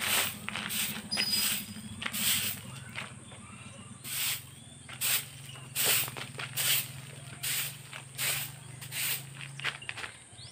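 A hoe scrapes and thuds on hard ground in regular strokes.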